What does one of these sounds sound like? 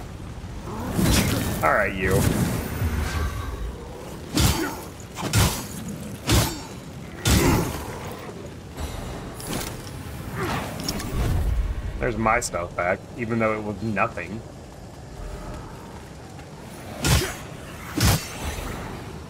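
Weapons clash and strike in sharp bursts.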